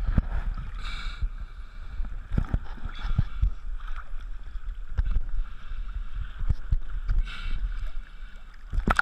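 Water splashes and laps close by at the surface.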